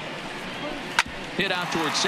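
A bat cracks sharply against a baseball.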